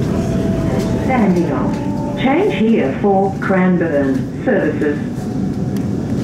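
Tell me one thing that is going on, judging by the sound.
Train wheels squeal shrilly for a few seconds on a curve.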